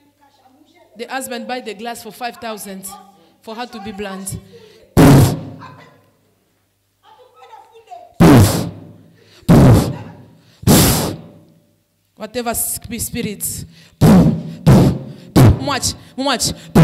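A woman speaks loudly and fervently into a microphone, heard through loudspeakers in a large echoing room.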